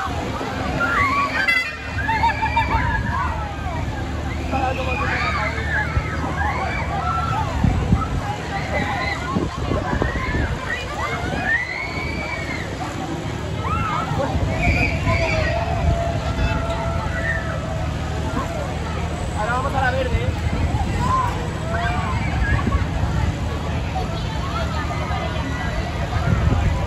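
A fairground ride's machinery rumbles and whirs steadily.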